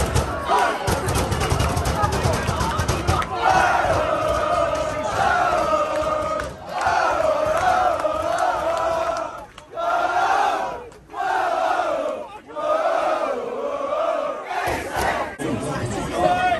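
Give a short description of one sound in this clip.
A crowd of young men chants loudly in unison close by, outdoors.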